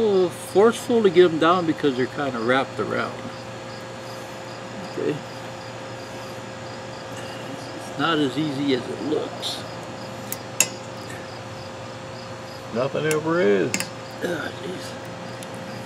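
A middle-aged man talks calmly and explains, close by.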